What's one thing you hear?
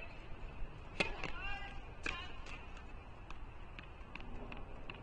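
A tennis ball bounces repeatedly on a hard court.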